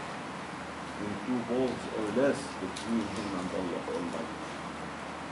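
An elderly man reads aloud calmly, close by.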